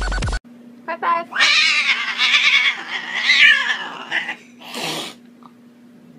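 A cat yowls loudly and repeatedly.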